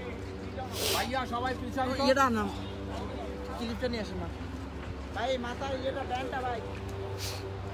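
Young men talk nearby outdoors.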